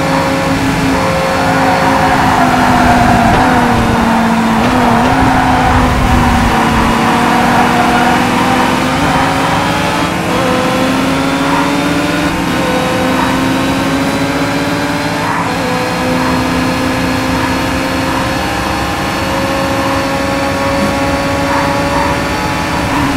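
A racing car engine roars steadily, rising in pitch as it revs through the gears.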